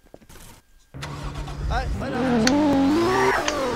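A car engine starts up and revs.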